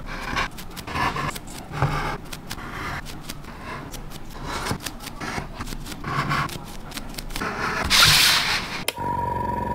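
Plastic model parts on wooden skewers click and tap as they are pushed into cardboard tubes.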